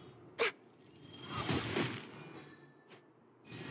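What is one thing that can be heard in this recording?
A magical blast bursts with a sparkling crash.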